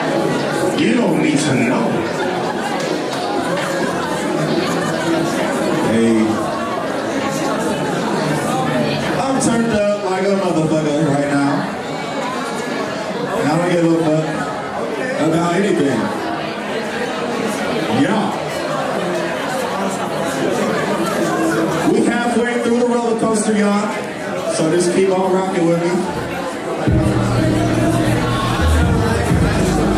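A young man raps energetically into a microphone.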